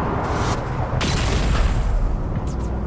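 An explosion bursts with a loud bang.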